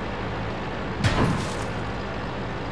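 A tank cannon fires with a loud boom that echoes away.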